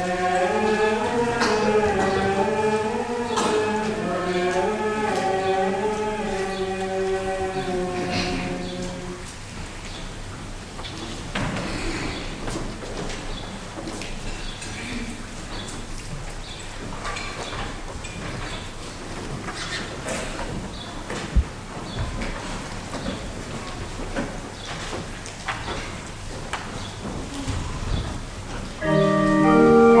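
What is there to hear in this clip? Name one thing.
Voices chant together in a large echoing hall.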